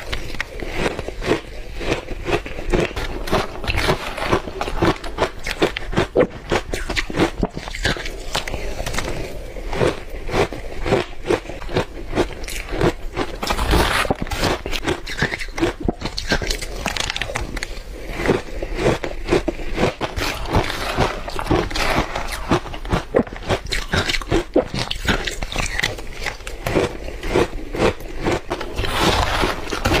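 A young woman chews crunchy food loudly and wetly, close to a microphone.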